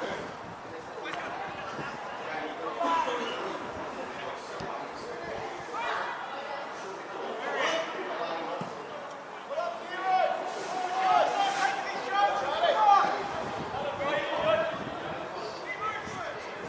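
Spectators on the sideline call out and cheer.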